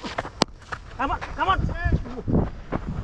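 A man calls out loudly across an open field.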